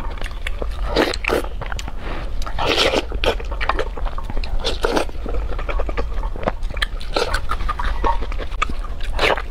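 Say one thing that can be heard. Sticky food squelches and crackles between fingers close to a microphone.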